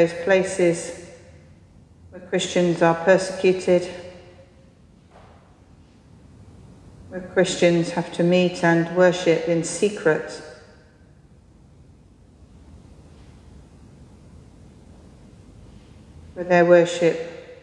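A man sings a chant in phrases in a large echoing church.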